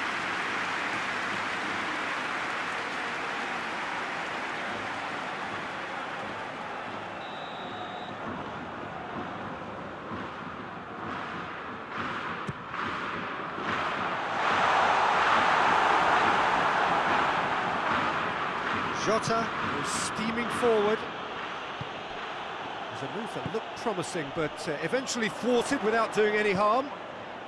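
A large stadium crowd roars steadily, swelling loudly for a few seconds.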